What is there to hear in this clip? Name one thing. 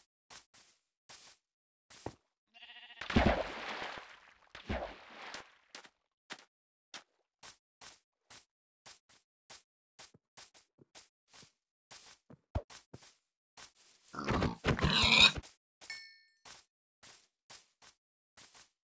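Footsteps patter steadily on grass and dirt in a game.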